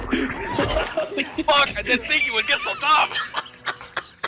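A man shouts and laughs loudly into a close microphone.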